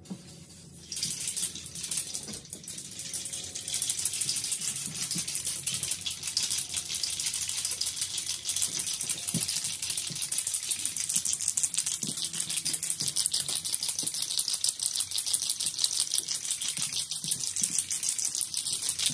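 A spray can hisses steadily as paint is sprayed.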